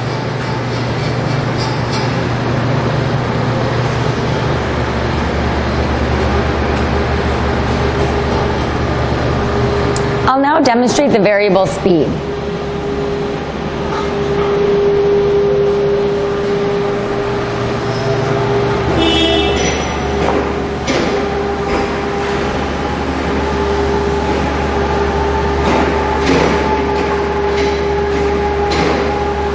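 A motor hums steadily.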